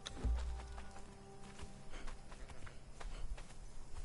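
Footsteps thud quickly on sand.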